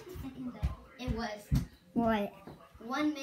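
A boy speaks close into a microphone.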